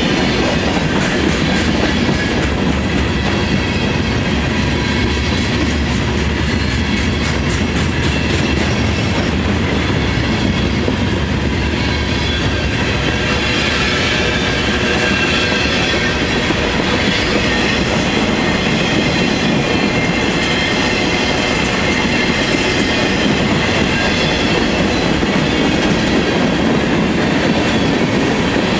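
Steel wheels squeal and clatter on the rails.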